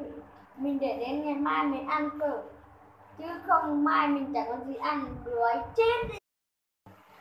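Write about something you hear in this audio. A young boy talks close by with animation.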